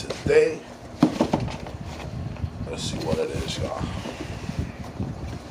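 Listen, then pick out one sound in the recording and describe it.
A cardboard box scrapes and thumps on a table.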